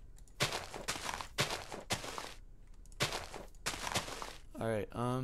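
Dirt crunches in short bursts as it is dug.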